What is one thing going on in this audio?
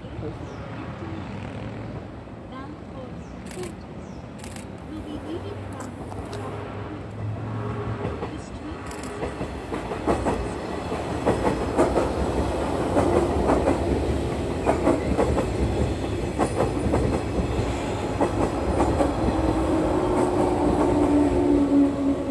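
An electric commuter train approaches and rumbles past close by.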